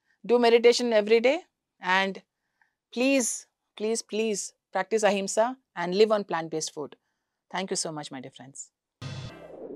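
A young woman speaks warmly and clearly into a close microphone.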